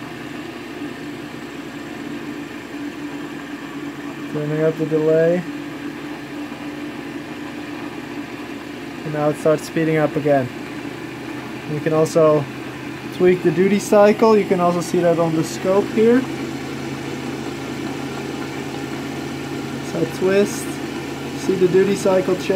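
A small electric motor hums steadily.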